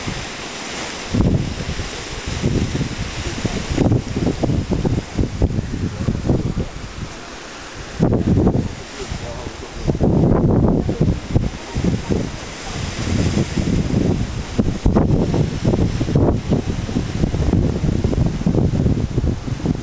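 Waves crash loudly against rocks and surge with churning water.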